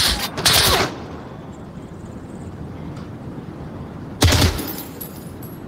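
A machine gun is reloaded with metallic clacks.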